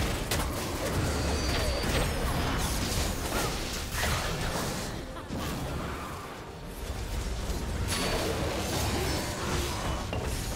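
Game spell effects whoosh, zap and crackle in a busy fight.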